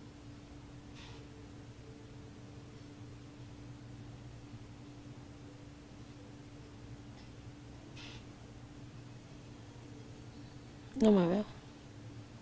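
A middle-aged woman breathes heavily and snores in her sleep close by.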